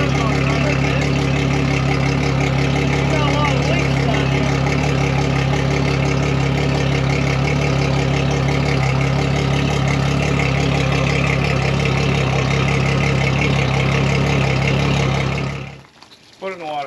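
An outboard engine idles with a steady, loud rumble.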